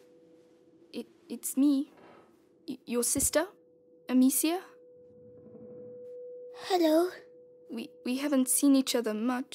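A young woman speaks softly and close by.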